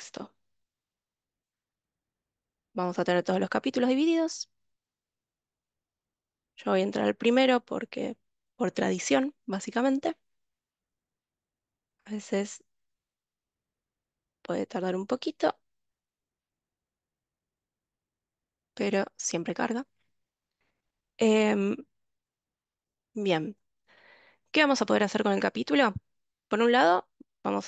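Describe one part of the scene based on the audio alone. A young woman speaks calmly in bursts over an online call.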